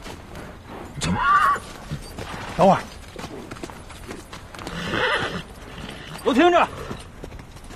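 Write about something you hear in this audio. A man speaks firmly, calling out outdoors.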